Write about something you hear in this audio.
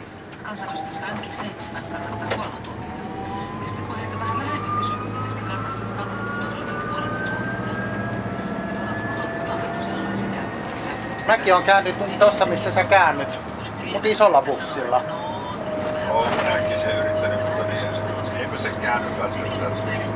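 A bus engine hums and whines steadily as the bus drives along a road.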